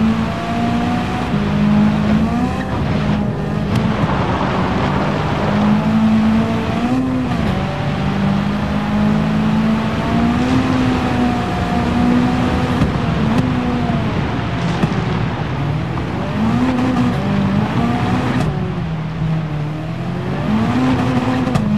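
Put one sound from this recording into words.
A rally car engine roars and revs up and down as the car races.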